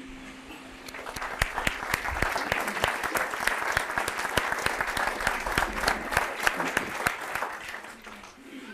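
An acoustic guitar is strummed close by.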